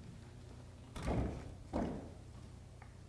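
A piano bench scrapes and thumps on a stage floor.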